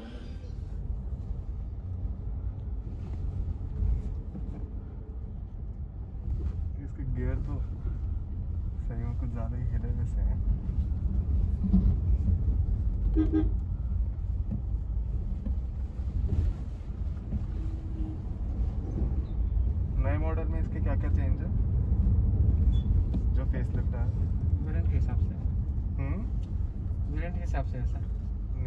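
A car engine hums steadily from inside the cabin while driving.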